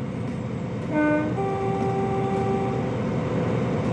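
A diesel locomotive horn sounds two blasts.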